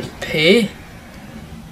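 A young man exclaims loudly in a sing-song voice, close to a microphone.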